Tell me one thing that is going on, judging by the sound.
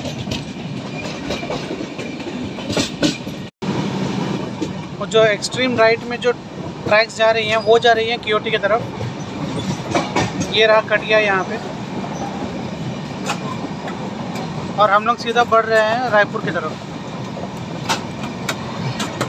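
A train rumbles steadily along the rails.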